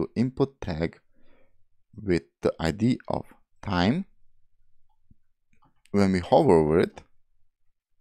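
A man talks calmly and closely into a microphone, in short bursts.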